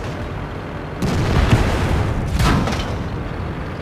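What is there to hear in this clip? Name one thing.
A cannon fires with loud booms.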